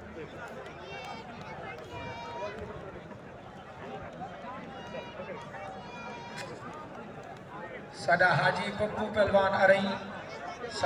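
A large outdoor crowd murmurs and chatters throughout.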